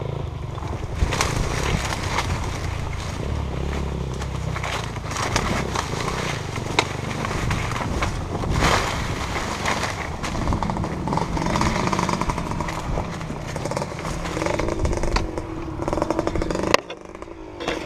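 Tyres crunch over dry stalks and rough ground.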